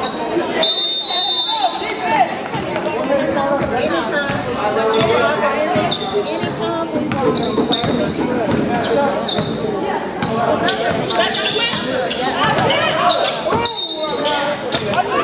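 A crowd of young spectators chatters and cheers in a large echoing gym.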